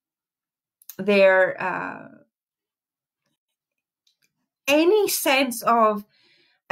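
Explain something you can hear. A young woman speaks expressively close to a microphone, in two short bursts.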